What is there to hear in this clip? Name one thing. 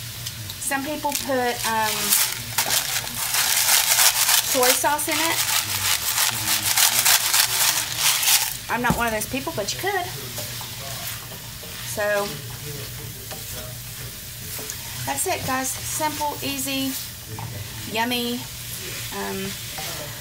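Food sizzles loudly in a hot pan, then quietens.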